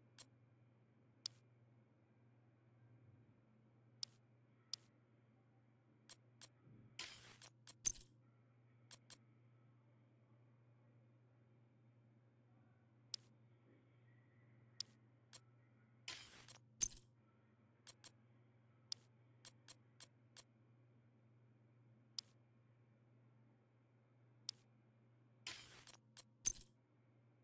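Short, sharp menu clicks sound again and again.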